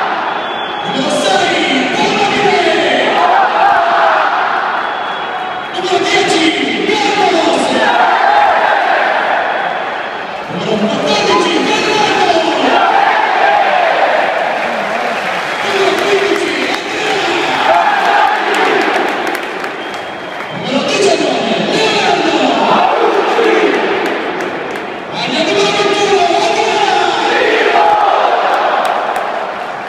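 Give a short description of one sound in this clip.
A large stadium crowd shouts in unison in repeated bursts.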